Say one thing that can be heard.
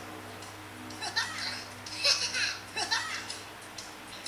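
Short cartoonish game sound effects play from a tablet's small speaker.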